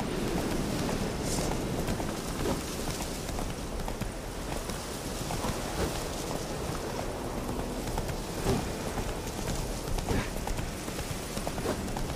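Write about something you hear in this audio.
A horse gallops.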